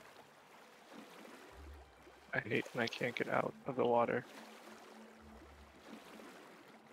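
Water laps softly.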